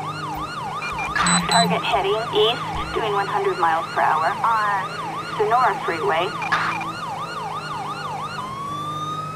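A police siren yelps rapidly close by.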